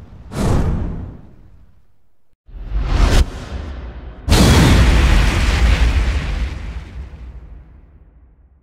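Deep whooshing bursts swell and boom, then fade out.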